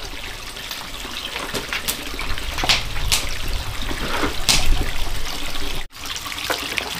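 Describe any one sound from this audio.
Water pours from a pipe and splashes into a basin.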